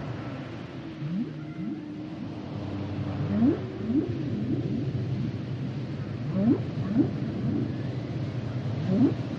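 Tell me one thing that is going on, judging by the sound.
Whales call with low, rising whoops underwater.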